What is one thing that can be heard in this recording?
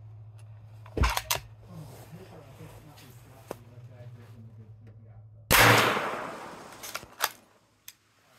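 A rifle bolt clicks and slides metallically.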